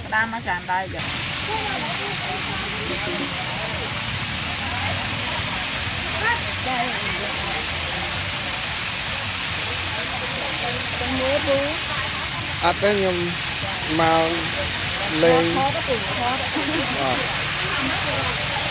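Hot oil sizzles and bubbles steadily as chickens deep-fry.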